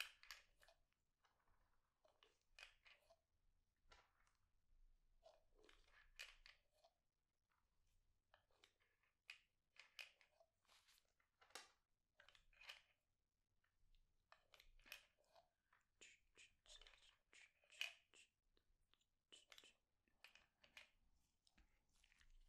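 Rubber gloves rustle and squeak.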